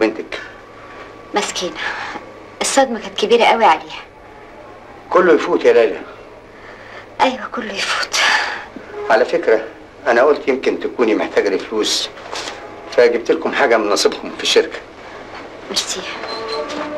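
A man speaks calmly and seriously nearby.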